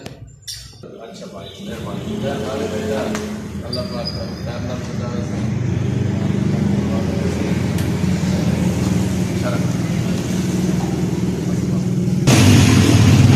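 A motorcycle engine idles with a steady low rumble.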